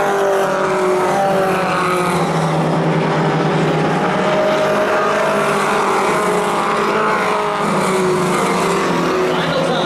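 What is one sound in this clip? A race car engine roars loudly as the car speeds past.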